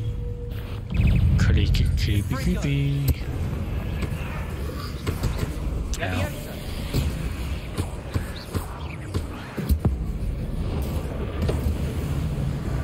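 Magic spells crack and zap in quick bursts.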